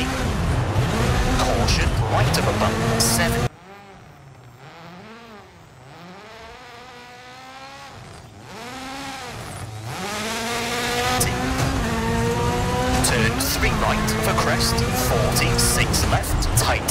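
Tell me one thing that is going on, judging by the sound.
A rally car engine roars and revs hard, quieter for a while as if heard from afar.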